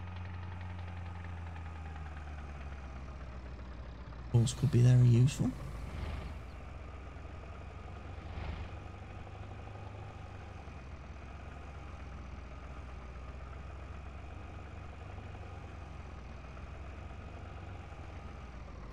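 A truck engine hums low and steady as it drives along.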